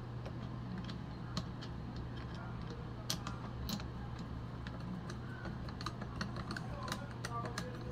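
A screwdriver scrapes and clicks softly against a small metal knob.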